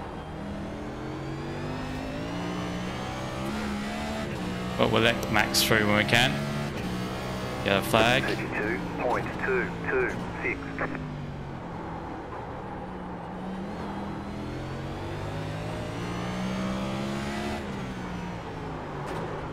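A race car engine roars steadily, its pitch rising and falling as it shifts gears.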